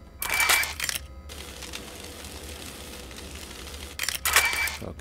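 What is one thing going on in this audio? An electric arc crackles and buzzes.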